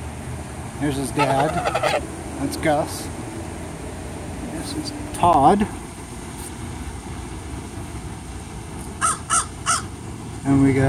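Geese honk loudly close by.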